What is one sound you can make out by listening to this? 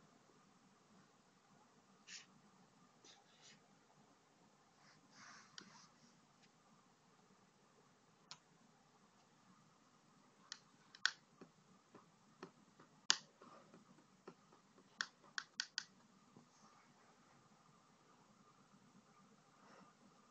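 A paintbrush strokes softly on paper.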